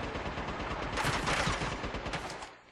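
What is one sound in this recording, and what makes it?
A gunshot cracks and a bullet strikes stone.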